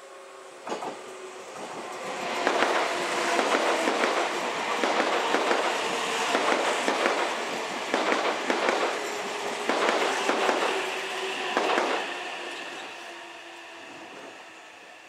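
A train rolls past close by, its wheels clattering rhythmically over the rail joints.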